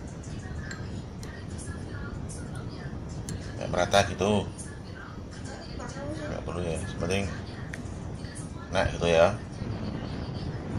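Chopsticks tap lightly against a glass bowl.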